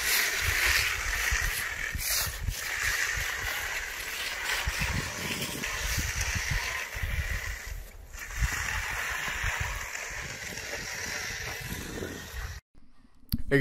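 A long-handled float scrapes and swishes across wet concrete.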